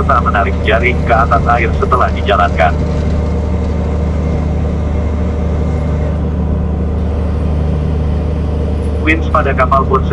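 A man talks outdoors.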